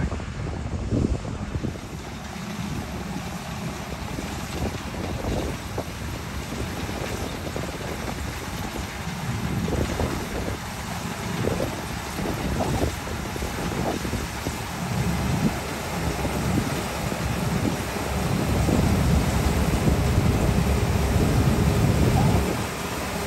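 A combine harvester's engine rumbles steadily, growing louder as it draws near.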